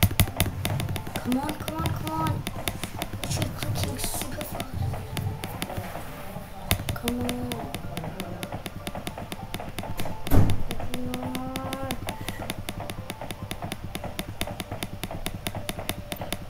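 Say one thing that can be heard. Rapid punching hits land again and again in quick rhythm.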